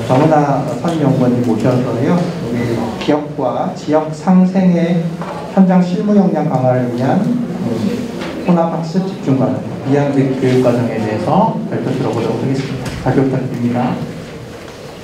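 A man speaks calmly through a microphone in a large room.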